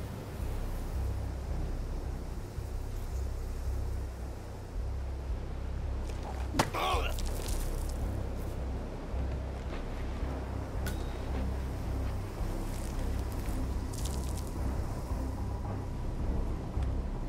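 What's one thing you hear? Wind blows steadily across open ground.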